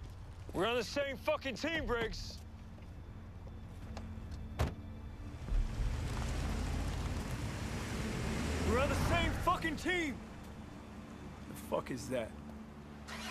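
A man shouts angrily close by.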